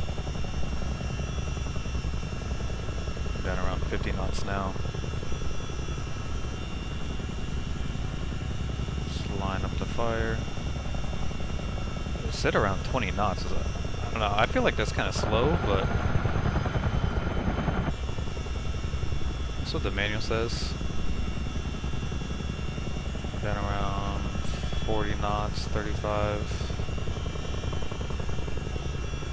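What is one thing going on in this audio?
A helicopter engine drones steadily with a low rumble.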